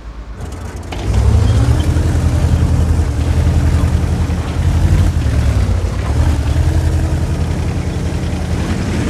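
A heavy tank engine revs up and rumbles loudly as the tank drives.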